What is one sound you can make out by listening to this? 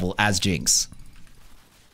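A young man speaks loudly and with animation close to a microphone.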